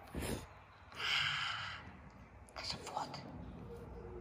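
A tiger cub snarls with a hiss.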